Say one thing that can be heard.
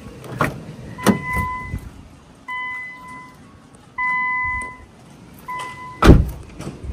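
A car's door-open chime beeps repeatedly.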